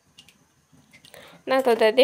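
Water pours into a metal pan.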